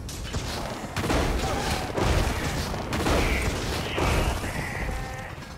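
Lightning crackles and booms.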